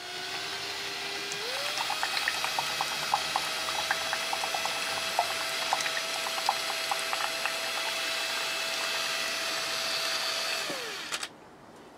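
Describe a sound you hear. A power drill whirs steadily, speeding up once and then winding down.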